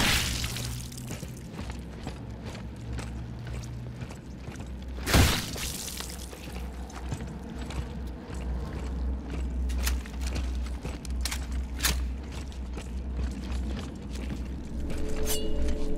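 Heavy boots clank on a metal floor.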